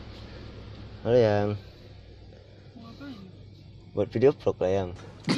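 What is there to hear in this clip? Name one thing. A young man speaks and laughs close by.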